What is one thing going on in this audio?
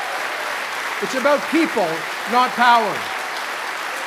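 A man in a crowd whoops and cheers loudly.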